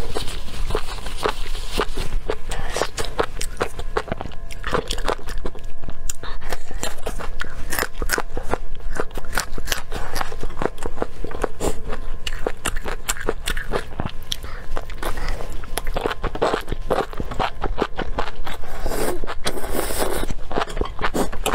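A young woman chews and crunches food close to a microphone.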